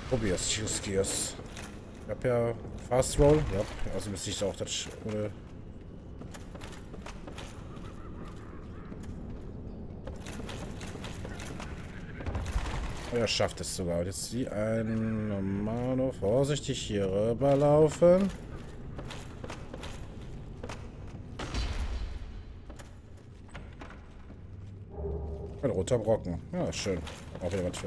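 Footsteps thud quickly across wooden boards.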